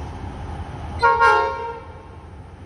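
A train horn blares.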